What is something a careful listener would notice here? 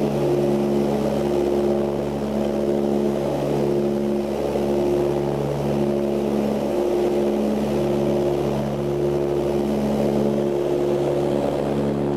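Propeller engines drone steadily with a low, even hum.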